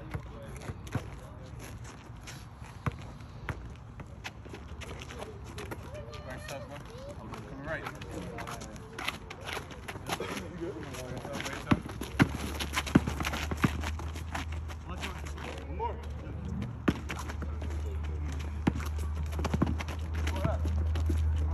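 Young men call out to each other across an outdoor court.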